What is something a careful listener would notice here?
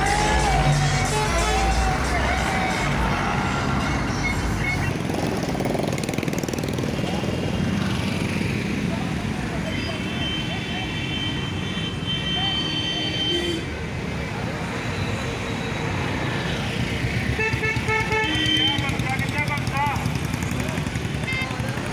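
Tractor engines rumble and chug nearby.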